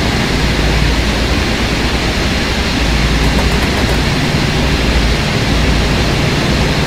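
A train engine rumbles steadily as it rolls along the tracks.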